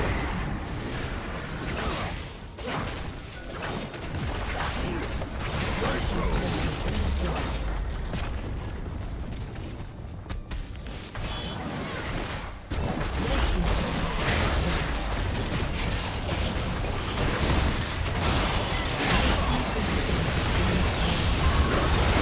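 Video game battle effects clash and burst rapidly.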